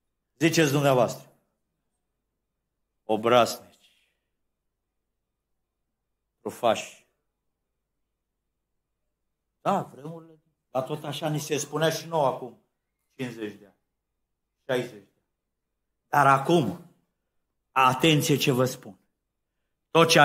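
An elderly man speaks with emphasis into a microphone, in short bursts with pauses.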